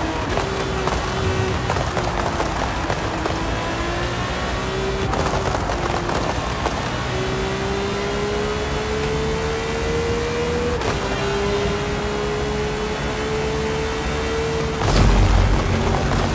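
A race car engine roars at high revs, rising and falling in pitch as the car shifts gears.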